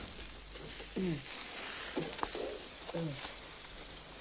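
A man groans softly in distress.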